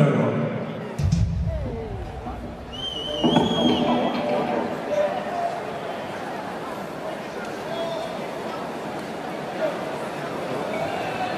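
An audience applauds and cheers.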